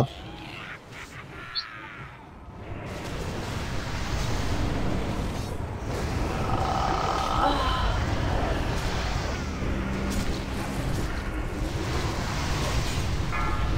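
Game spell effects crackle and boom during a fight.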